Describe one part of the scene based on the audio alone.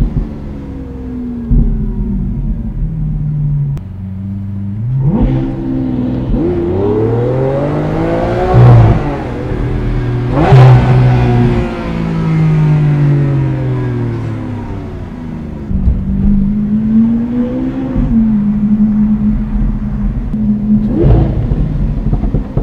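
A powerful car engine rumbles, revs up and down and roars as gears change.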